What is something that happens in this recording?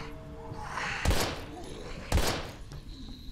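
A pistol fires sharp single shots.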